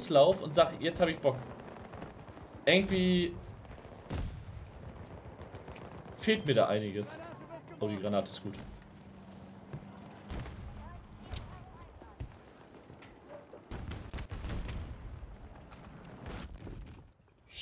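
Gunfire and explosions crackle and boom in a game.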